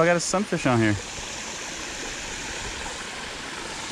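Water pours steadily over a low spillway.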